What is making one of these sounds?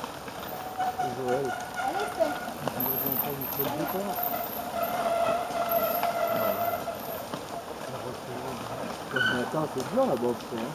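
A man nearby shouts encouragement.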